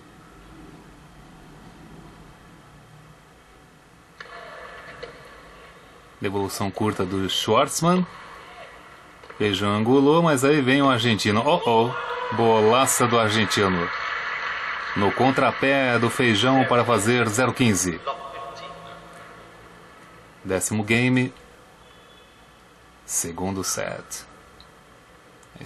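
A tennis ball is struck sharply by a racket, back and forth.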